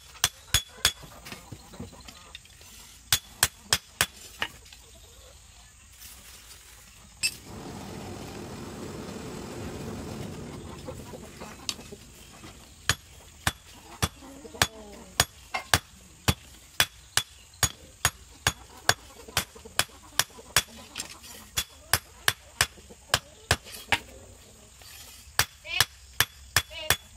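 A hammer rings sharply on hot metal over an anvil in quick blows.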